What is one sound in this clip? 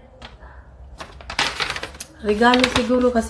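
A paper rustles as it is lifted.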